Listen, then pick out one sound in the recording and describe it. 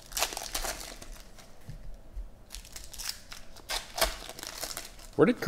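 Foil wrappers crinkle and tear as hands open card packs close by.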